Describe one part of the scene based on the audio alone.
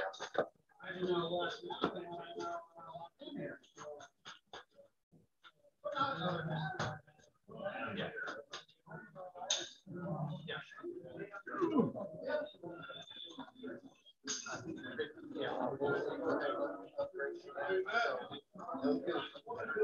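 Several men chat and murmur in a room, heard through an online call.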